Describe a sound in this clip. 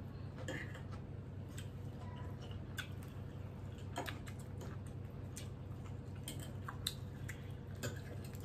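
Cutlery clinks and scrapes against plates.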